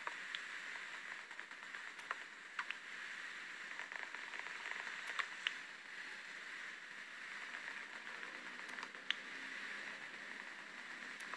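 Game blocks of wood and leaves are broken with short repeated knocks.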